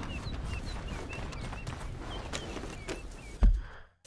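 Horse hooves clop on a dirt path.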